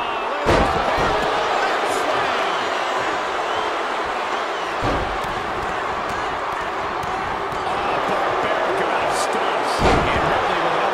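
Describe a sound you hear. Bodies slam heavily onto a wrestling ring mat a few times.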